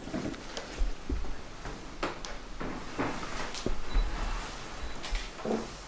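Footsteps shuffle across a wooden floor.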